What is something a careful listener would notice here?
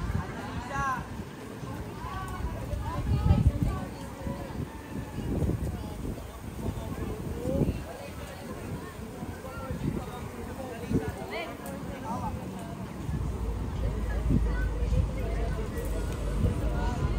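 Several men and women talk and chat at a distance, outdoors.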